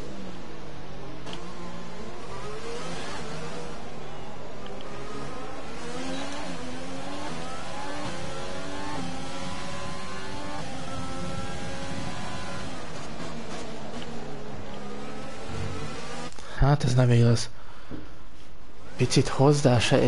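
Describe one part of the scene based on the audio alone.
A racing car engine screams at high revs, rising and falling with gear changes.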